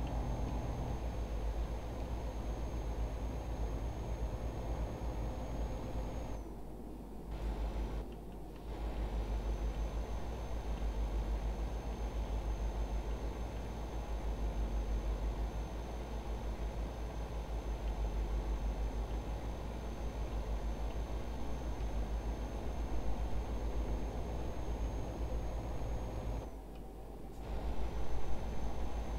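A truck engine drones steadily with a low rumble.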